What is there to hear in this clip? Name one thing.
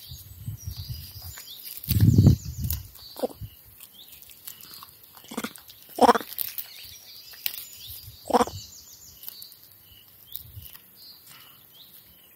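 A monkey rustles and tugs at blades of grass close by.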